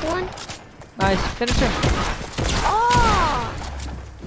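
A shotgun fires in loud, sharp blasts.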